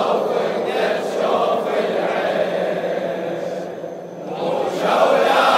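A large crowd of men chants loudly together in a big echoing hall.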